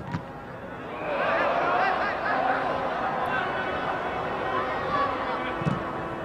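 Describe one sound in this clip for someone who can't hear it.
A large crowd in a stadium roars and cheers.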